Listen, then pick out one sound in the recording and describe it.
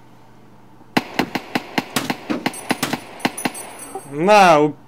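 A rifle fires a quick burst of shots.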